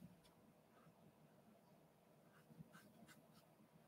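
A fine paintbrush dabs softly on paper.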